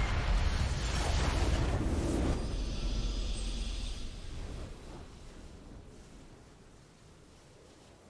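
A deep booming game victory fanfare swells and then slowly fades.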